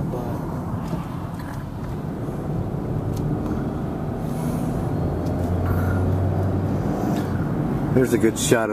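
A vehicle rolls steadily along a road with a low rumble.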